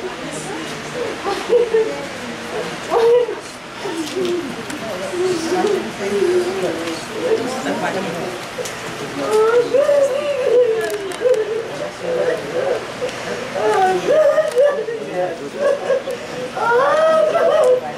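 A woman sobs and wails loudly nearby.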